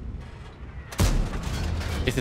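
A tank gun fires with a sharp boom.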